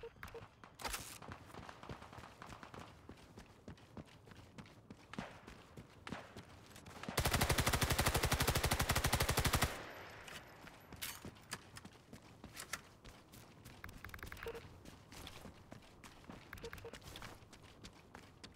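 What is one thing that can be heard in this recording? Gunshots and blasts crack in the distance.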